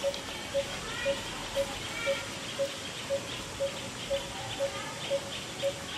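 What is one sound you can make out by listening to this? A baby monkey squeaks.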